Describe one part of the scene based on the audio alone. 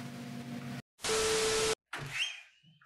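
Loud television static hisses briefly.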